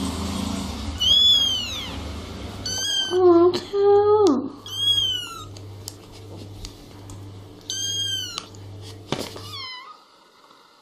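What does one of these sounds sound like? Kittens mew in high, thin cries.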